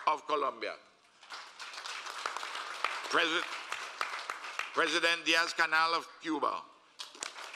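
An elderly man speaks slowly and formally into a microphone.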